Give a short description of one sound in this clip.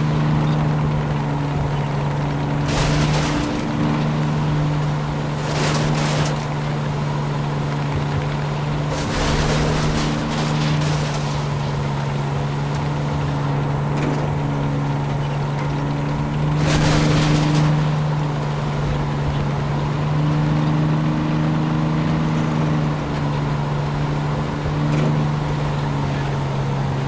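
A tank engine drones as the tank moves.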